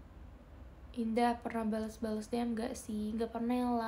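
A young woman speaks close to a microphone in a high, animated voice.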